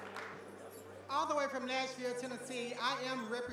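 A second performer speaks into a microphone.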